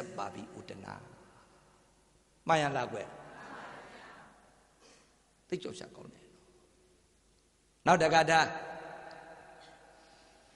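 A middle-aged man speaks through a microphone in short, emphatic bursts, with a lingering echo.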